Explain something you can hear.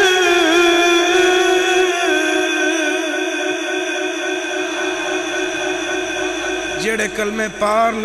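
A man chants in a long, drawn-out melodic voice through a microphone, echoing in a large hall.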